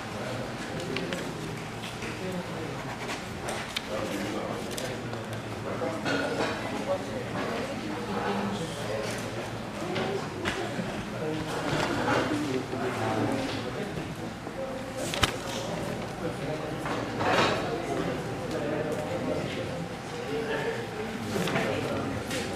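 Several men and women talk in a murmur around the room.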